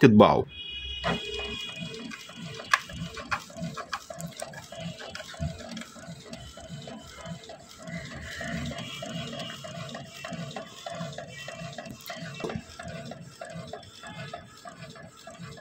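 A printer whirs and hums steadily.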